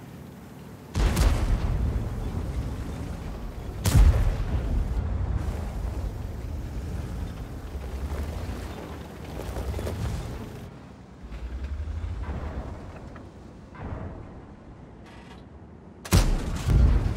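A tank cannon fires with a loud, sharp boom.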